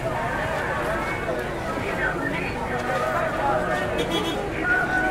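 Warbling electronic tones swirl and shift without pause.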